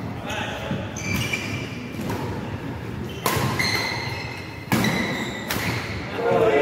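A shuttlecock is struck sharply by rackets in a large echoing hall.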